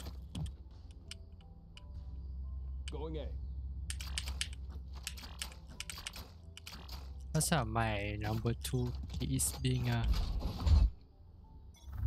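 Game weapons click and rattle as they are drawn and switched.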